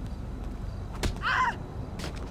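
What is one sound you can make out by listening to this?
A heavy blow lands with a sharp thud.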